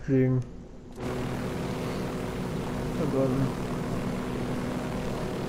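A helicopter's rotor whirs steadily close by.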